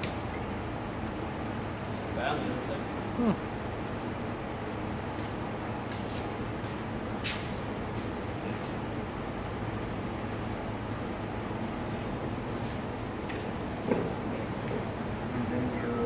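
A fan hums steadily.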